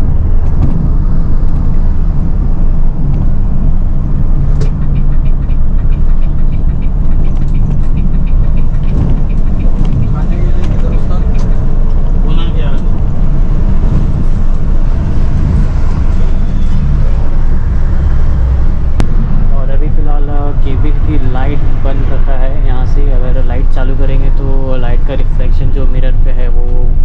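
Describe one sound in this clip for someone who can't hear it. A heavy truck engine rumbles steadily from inside the cab.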